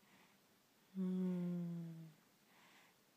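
A baby coos softly close by.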